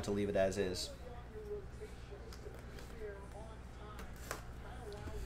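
A foil card pack crinkles as fingers tear it open.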